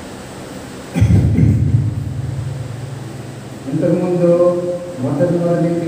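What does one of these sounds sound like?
An elderly man chants slowly through a microphone.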